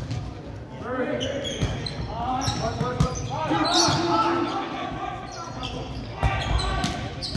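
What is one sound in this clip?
Young men shout and call out to each other in an echoing gym.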